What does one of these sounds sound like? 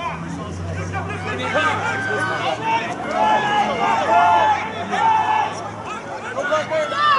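Young players shout and call to each other outdoors on an open field.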